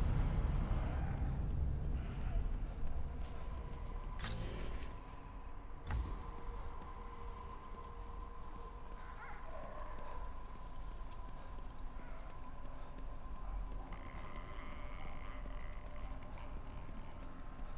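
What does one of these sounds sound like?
Footsteps run on hard pavement.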